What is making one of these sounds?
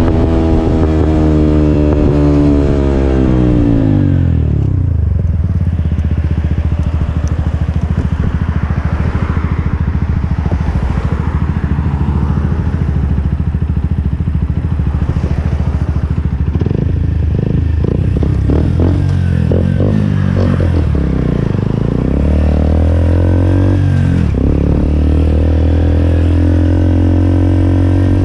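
A motorcycle engine idles with a steady, throbbing rumble.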